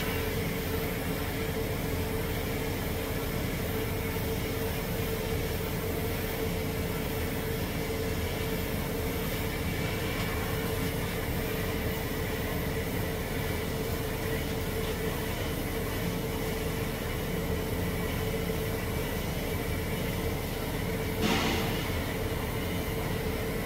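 A welding arc buzzes and hisses steadily.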